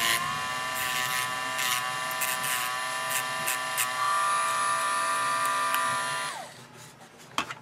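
A rotary tool whines at high speed, grinding a small metal part, then winds down.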